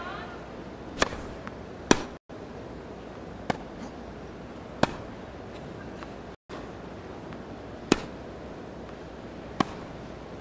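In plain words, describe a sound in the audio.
Tennis balls are struck sharply with rackets in a rally.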